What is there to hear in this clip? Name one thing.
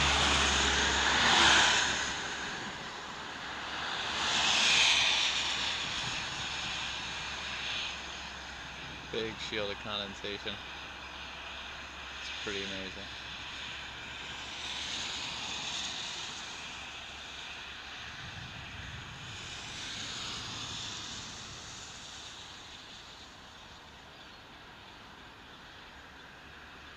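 A car drives along a highway with a steady rumble of tyres and wind.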